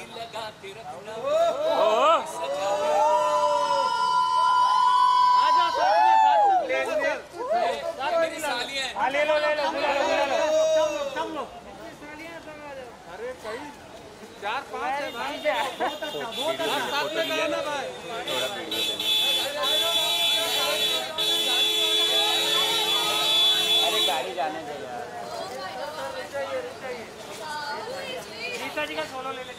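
Young women chatter and laugh excitedly nearby.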